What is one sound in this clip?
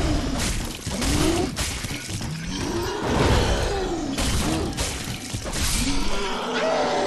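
Heavy blades strike and clang in a fight.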